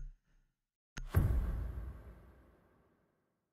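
A game plays a loud deep boom as the round begins.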